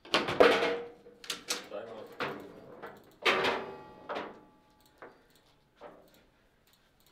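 A ball clacks hard against the players and walls of a foosball table.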